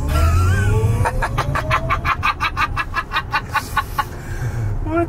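A man laughs loudly close by.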